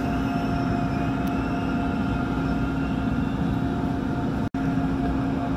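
An electric commuter train hums as it stands at a platform.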